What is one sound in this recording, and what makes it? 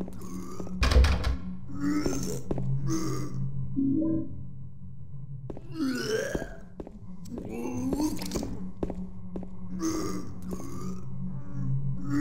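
Footsteps thud slowly on a hard floor.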